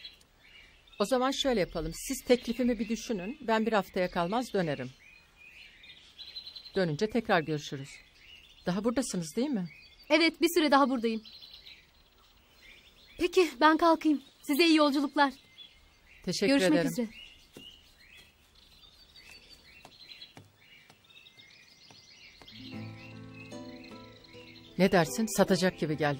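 A middle-aged woman speaks firmly and calmly, close by.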